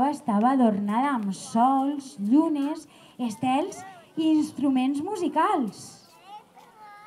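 A woman reads aloud expressively into a microphone, her voice amplified in a large space.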